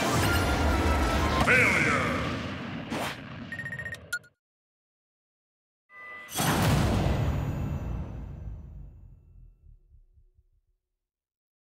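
Game music and sound effects play.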